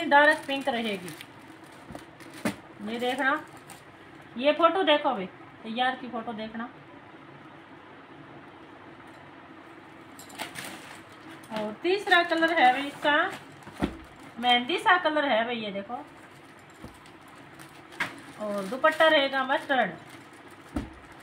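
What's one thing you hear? Plastic packaging crinkles as it is handled.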